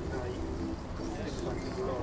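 A crowd of adults chatters and murmurs nearby.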